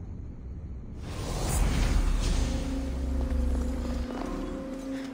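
A deep magical whoosh swells and fades.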